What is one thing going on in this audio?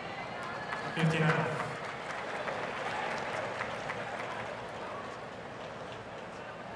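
A large crowd cheers and applauds.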